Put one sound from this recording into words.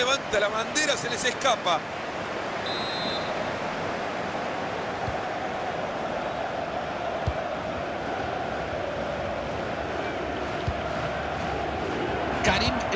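A large crowd roars and chants steadily in a stadium.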